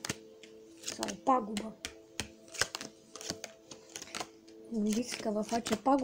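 Playing cards slap and flick softly onto a table.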